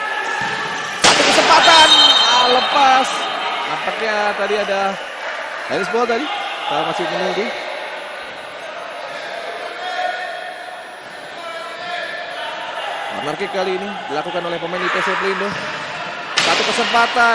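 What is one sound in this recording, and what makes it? A crowd cheers loudly in an echoing indoor arena.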